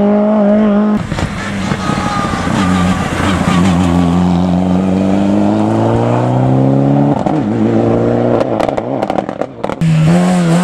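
A second rally car engine roars up and revs hard as the car pulls away.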